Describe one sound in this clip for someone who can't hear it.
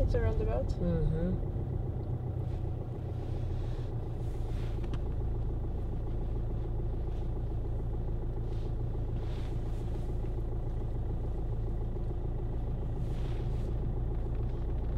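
A car engine idles with a steady low rumble, heard from inside the car.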